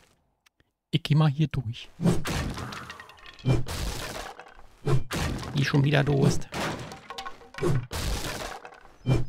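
An axe strikes wooden spikes with dull thuds.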